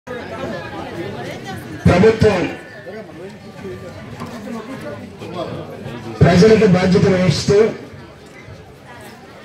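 A man speaks with animation into a microphone, heard through loudspeakers.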